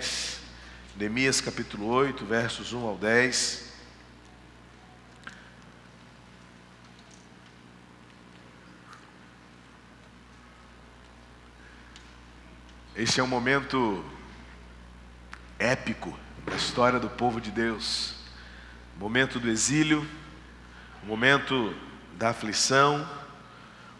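A man speaks calmly through a microphone, with long pauses.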